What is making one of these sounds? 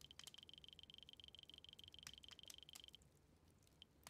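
A game menu ticks rapidly as a counter climbs.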